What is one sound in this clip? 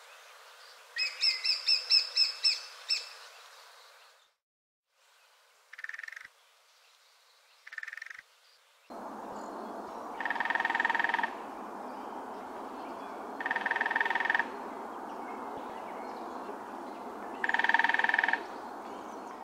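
A small woodpecker calls with short, sharp notes.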